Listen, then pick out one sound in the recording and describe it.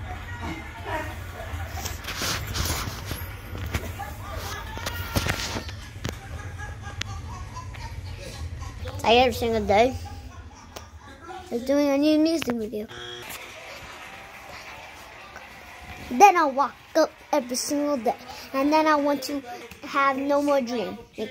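A boy talks animatedly, close to a phone microphone.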